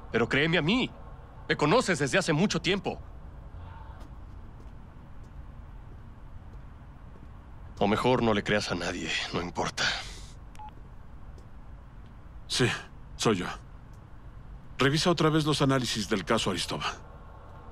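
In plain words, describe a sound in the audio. A man speaks in a low, calm voice close by.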